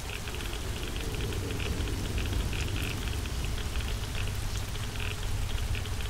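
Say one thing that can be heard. Sparks crackle and sizzle close by.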